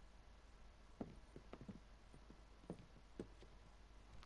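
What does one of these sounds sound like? A wooden chair knocks and creaks.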